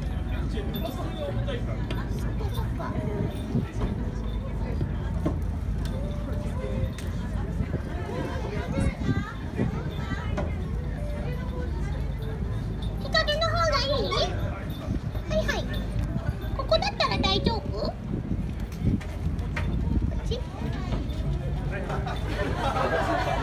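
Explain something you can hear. A crowd of onlookers chatters and laughs close by.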